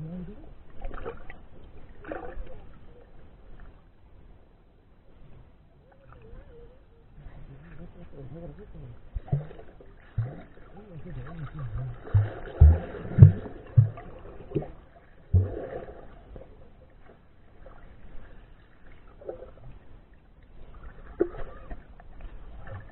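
Water swirls and thumps in low, muffled bursts, heard from underwater.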